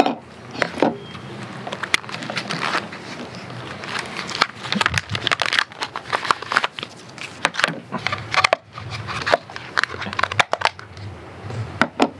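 Plastic packaging crinkles and rustles in someone's hands.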